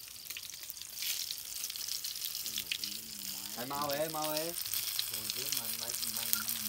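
Fish sizzles and crackles as it fries in hot oil.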